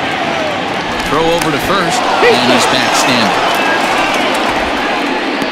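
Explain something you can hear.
A crowd cheers loudly.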